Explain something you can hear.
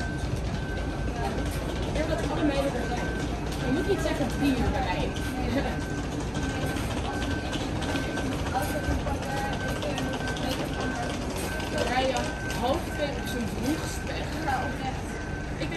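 A coach engine rumbles as the coach pulls slowly in.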